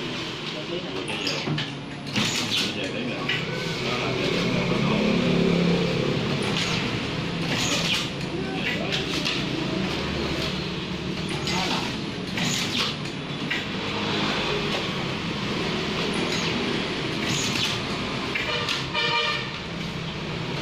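A printing frame clacks and knocks as it lifts and drops.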